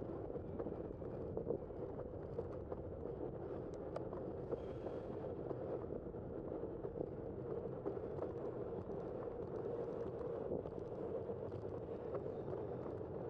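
A car's tyres rumble steadily on the road.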